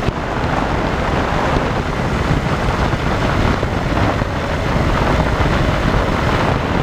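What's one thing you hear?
Wind rushes loudly past the plane.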